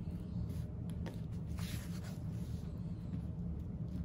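Fabric rustles and crinkles as hands handle it.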